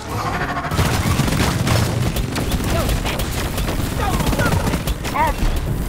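Creatures screech and shriek.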